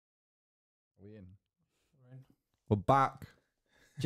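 A man speaks into a microphone, close by, in short bursts.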